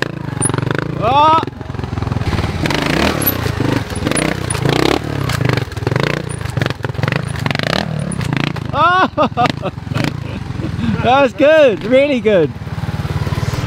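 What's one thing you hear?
A motorbike's electric motor whines in short bursts, rising and falling in pitch.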